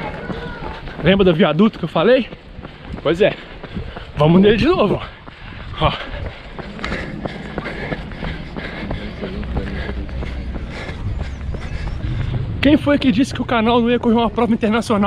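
A young man talks with animation close to a microphone, slightly out of breath.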